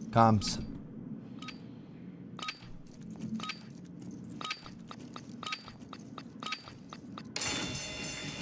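A countdown beeps once each second.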